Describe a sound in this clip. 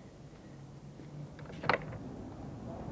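A door latch rattles and clanks.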